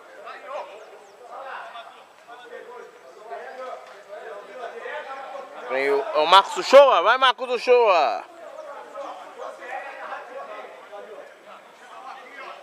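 Men shout to each other outdoors, some distance away.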